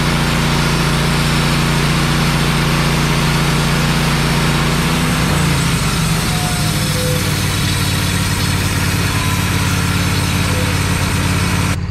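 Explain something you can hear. A sawmill engine drones loudly and steadily, changing pitch partway through.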